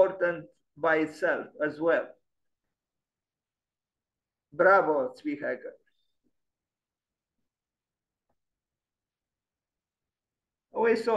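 An elderly man speaks calmly, in short phrases with pauses.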